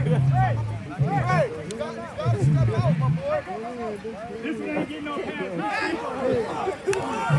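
A crowd of young players and spectators shouts and cheers outdoors.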